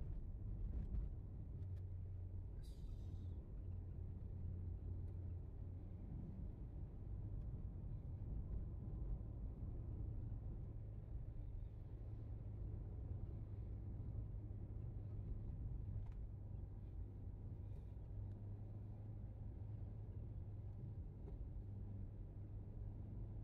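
A car engine hums steadily from inside the car while driving.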